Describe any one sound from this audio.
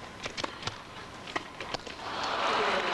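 A tennis ball is struck back and forth by rackets.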